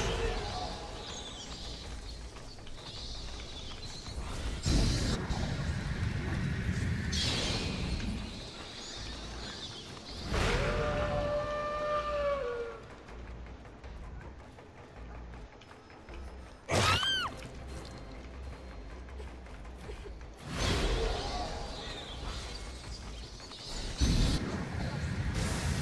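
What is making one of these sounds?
A large bat's wings flap and whoosh in bursts.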